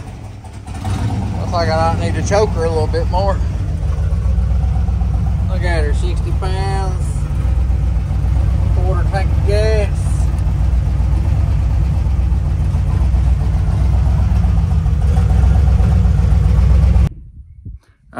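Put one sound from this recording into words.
An engine idles with a steady low rumble.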